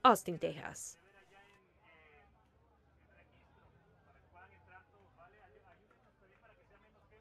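A crowd of people murmurs softly outdoors.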